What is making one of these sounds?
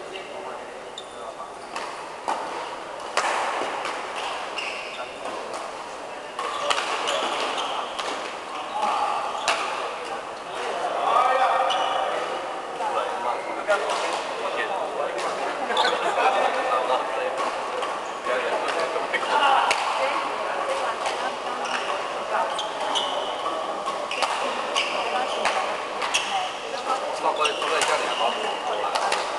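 Men talk and call out during play.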